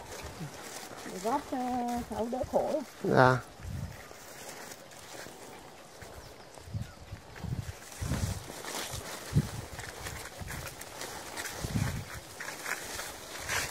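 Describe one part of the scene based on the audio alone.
Dry branches scrape and rustle as they are dragged through grass.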